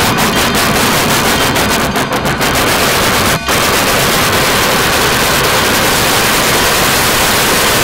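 A steam locomotive chuffs steadily as it rolls along the track.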